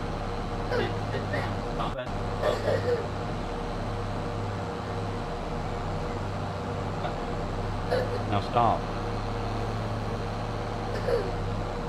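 A man speaks briefly and casually into a nearby microphone.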